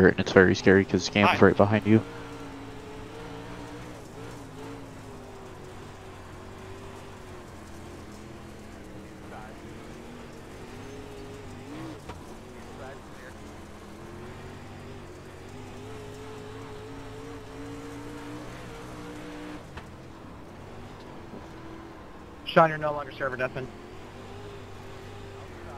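A race car engine drones steadily from inside the car, rising and falling slightly in pitch.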